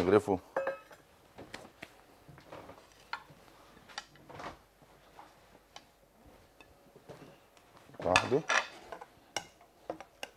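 A metal spoon stirs and scrapes in a pot.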